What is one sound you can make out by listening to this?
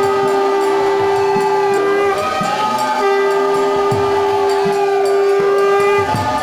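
A man plays a hand drum with soft thumps.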